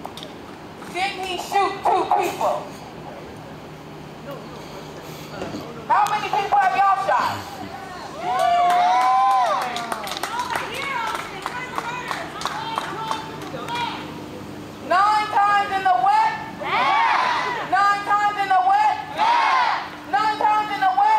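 A crowd of men and women shouts and chants loudly outdoors, a short distance away.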